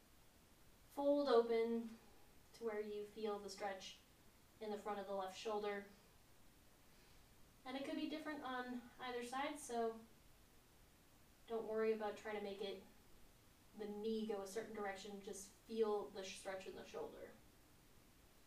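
A woman speaks calmly and slowly, close by, in short phrases with pauses.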